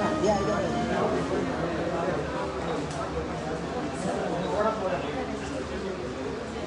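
Several adults chat and murmur nearby.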